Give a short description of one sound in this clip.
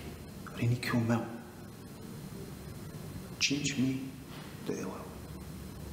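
A middle-aged man speaks calmly and close by, in short phrases.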